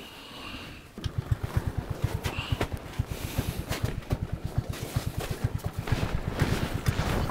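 Footsteps crunch steadily in snow.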